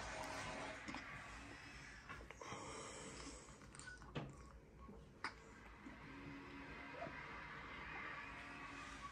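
A baby sucks and gulps softly from a bottle.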